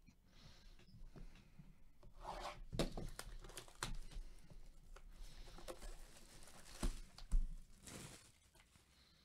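Plastic wrap crinkles and rustles as a box is handled.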